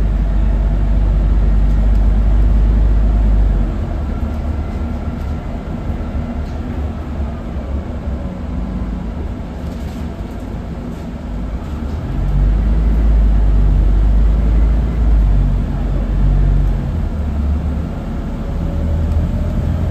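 Wind and road noise rush past the bus windows.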